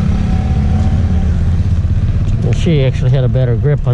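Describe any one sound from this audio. A motorcycle engine hums as it rides by.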